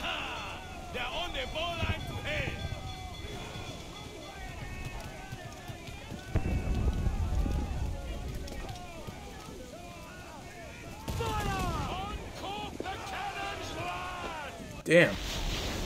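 Wind howls in a storm.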